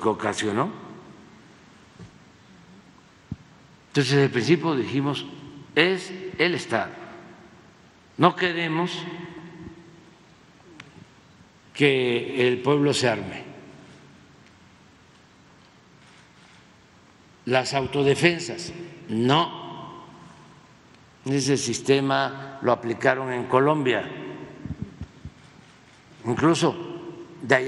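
An elderly man speaks slowly and deliberately into a microphone, with long pauses between phrases.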